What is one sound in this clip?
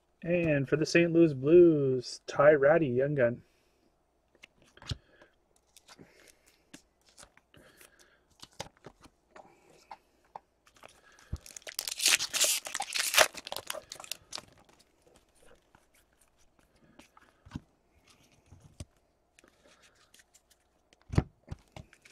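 Trading cards flick and slide against each other as they are sorted.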